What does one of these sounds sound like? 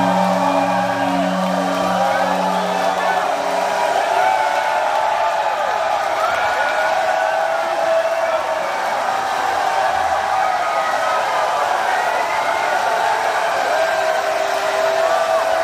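A rock band plays loudly.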